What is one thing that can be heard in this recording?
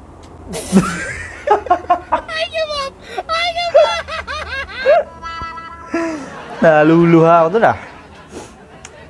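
A young man laughs loudly close to a microphone.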